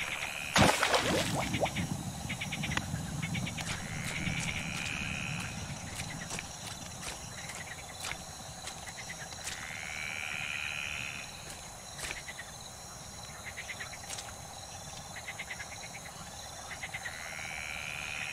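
Footsteps crunch on soft ground at a steady walking pace.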